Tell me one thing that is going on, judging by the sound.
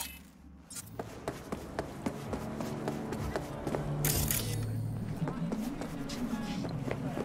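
Footsteps tap on hard pavement at a steady walking pace.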